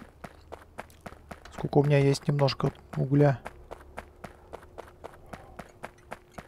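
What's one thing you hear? Footsteps tap quickly and evenly on the ground.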